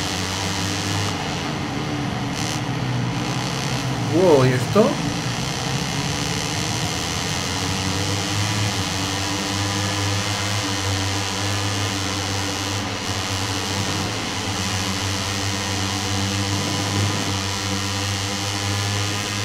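Racing motorcycle engines drone steadily and roar.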